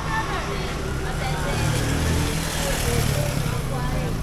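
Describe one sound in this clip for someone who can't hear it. A motorcycle rides past on a street.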